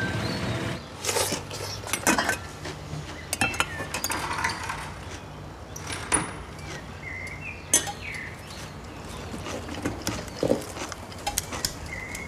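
A spoon clinks and scrapes against a metal pot.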